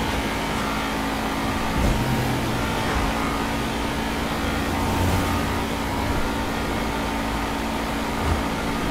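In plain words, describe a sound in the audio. A car engine hums steadily as the car speeds along a road.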